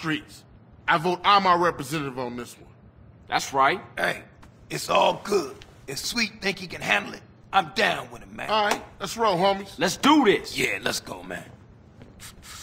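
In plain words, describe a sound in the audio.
Another man answers casually.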